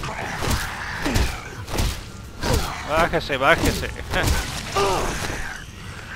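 Heavy blows thud against a creature's body.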